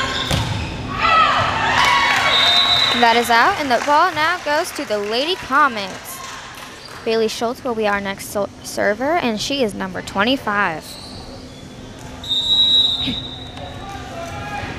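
A crowd cheers and claps in an echoing gym.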